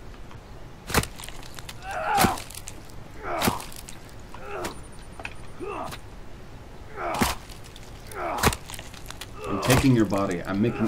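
Small items are picked up with short snapping sounds.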